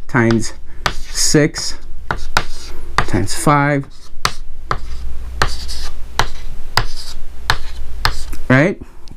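Chalk taps and clicks sharply on a board in a quick, even rhythm.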